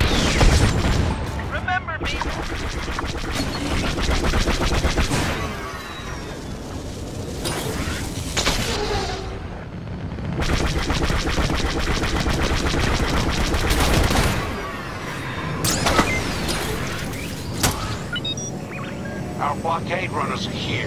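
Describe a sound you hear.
A starfighter's engines roar steadily.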